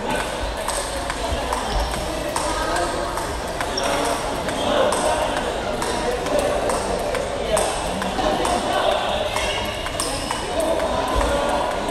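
A ping pong ball clicks back and forth across a table.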